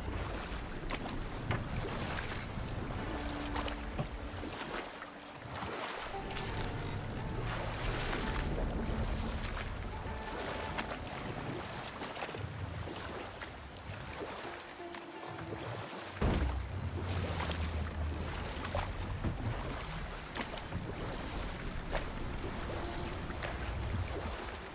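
Oars dip and splash in water with a steady rhythm.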